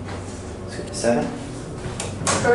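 A lift button clicks as it is pressed.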